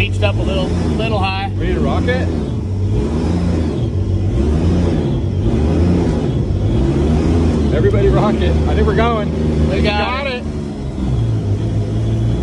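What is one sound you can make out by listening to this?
A vehicle engine rumbles and revs up and down.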